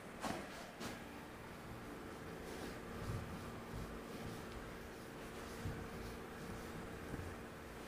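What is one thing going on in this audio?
A cloth rubs and wipes across a board.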